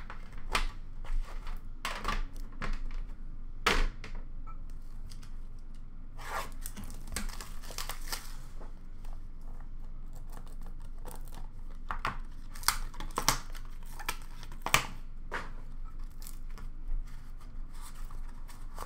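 Cardboard packs rustle and slide against each other.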